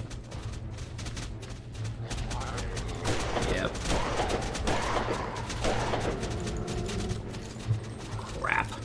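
A revolver fires several loud shots.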